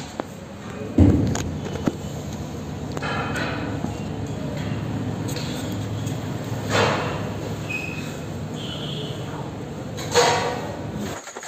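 Something knocks and thumps loudly right up close.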